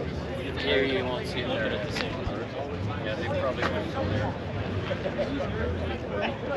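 Several adults chat nearby outdoors, their voices mixing together.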